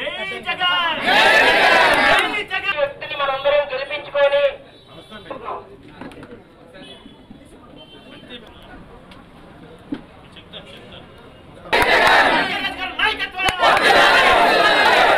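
A crowd of men cheers and chants loudly close by.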